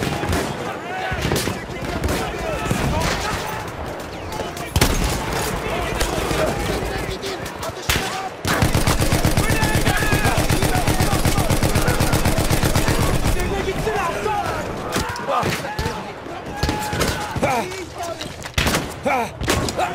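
A shotgun fires loud single blasts.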